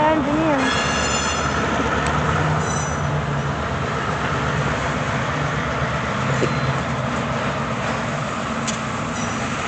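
A diesel locomotive engine drones.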